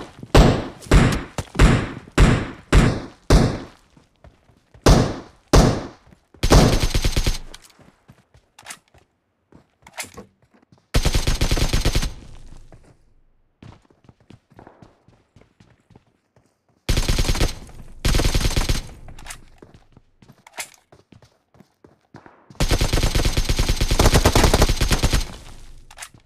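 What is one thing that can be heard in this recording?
Gunshots fire, first as single shots and then in rapid bursts.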